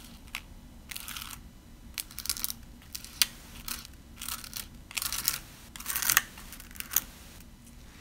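A palette knife scrapes across a stencil in short strokes.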